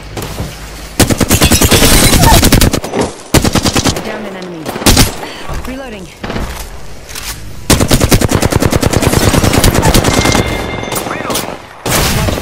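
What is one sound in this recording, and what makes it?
Rapid automatic gunfire rattles in fast bursts.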